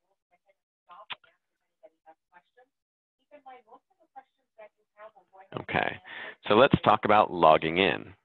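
A man speaks calmly through a microphone on an online call.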